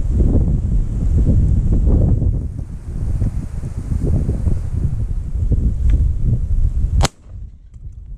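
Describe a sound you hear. Wind rumbles loudly outdoors.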